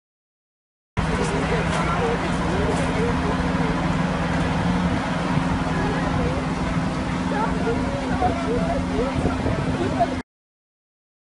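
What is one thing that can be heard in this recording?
A fire engine's motor idles with a steady low hum.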